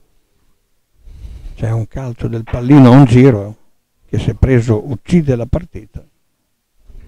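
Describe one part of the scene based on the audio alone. A man speaks loudly and with animation nearby.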